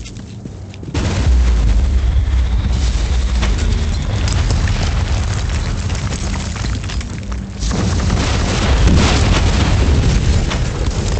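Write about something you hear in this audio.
Explosions boom with a deep rumble.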